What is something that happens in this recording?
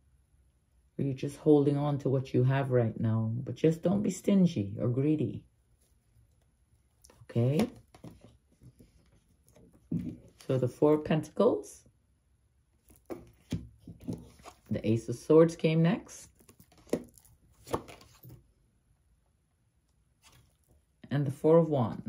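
An older woman talks calmly and close by, facing the listener.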